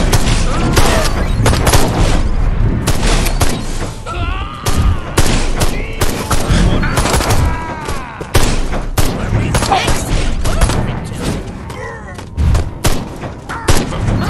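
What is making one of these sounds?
Energy weapons zap and blast repeatedly.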